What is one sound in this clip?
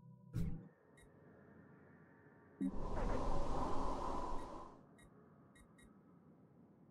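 Soft interface clicks tick now and then.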